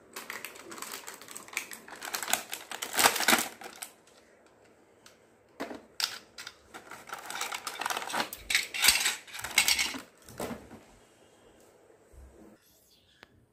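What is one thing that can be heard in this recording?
Plastic toy pieces rattle and click as they are unpacked.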